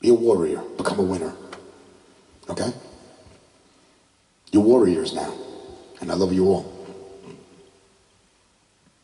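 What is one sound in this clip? A man sings into a microphone in a room that echoes.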